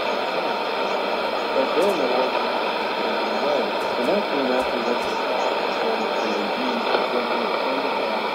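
A shortwave radio hisses with heavy static.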